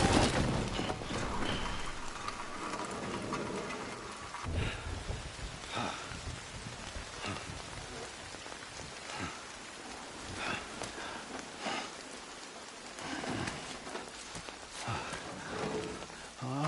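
Wind blows steadily outdoors.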